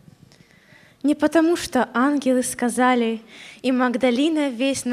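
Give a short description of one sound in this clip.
A young woman sings into a microphone through loudspeakers in an echoing hall.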